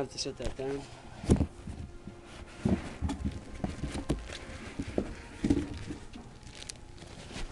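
Fabric rustles and thumps very close by.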